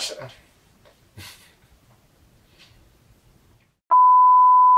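A man speaks quietly and briefly, close by.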